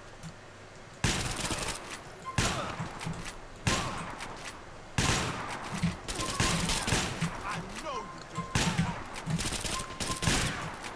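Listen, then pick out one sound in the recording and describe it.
Gunshots fire loudly, again and again, each ringing out with a long echo.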